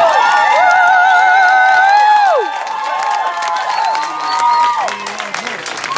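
A crowd of young women and men cheers and screams loudly outdoors.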